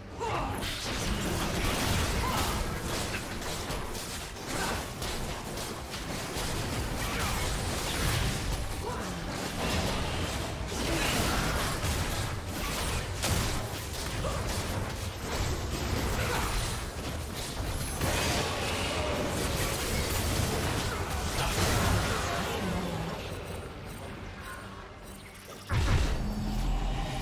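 Video game combat effects crackle, clash and blast in quick bursts.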